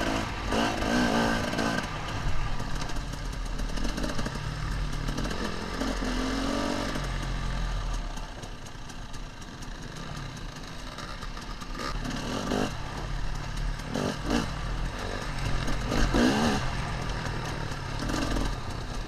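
Another dirt bike engine buzzes a short way ahead.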